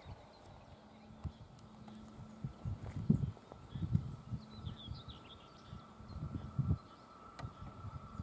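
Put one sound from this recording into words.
A distant train approaches with a growing hum.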